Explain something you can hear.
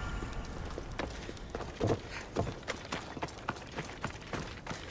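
Footsteps run quickly over gravel and stone.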